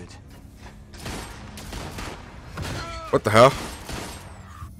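Pistol shots ring out sharply.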